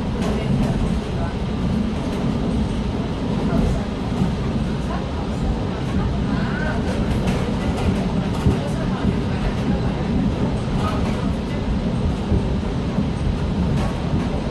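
An electric commuter train rumbles along the track, heard from inside a carriage.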